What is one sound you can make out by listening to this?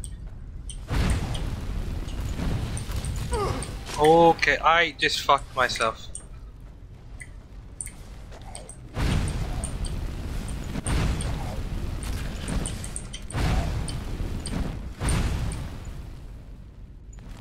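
A fire spell roars and crackles in bursts.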